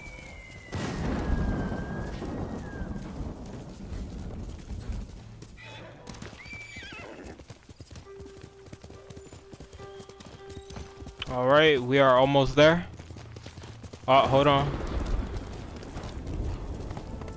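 Horse hooves gallop over grass and dirt.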